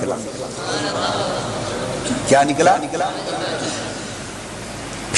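A man preaches with animation into a microphone, heard over loudspeakers in a large echoing hall.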